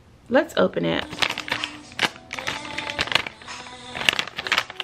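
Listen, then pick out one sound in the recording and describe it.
A plastic packet crinkles and rustles in someone's hands.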